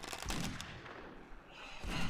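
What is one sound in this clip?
A zombie groans and snarls close by.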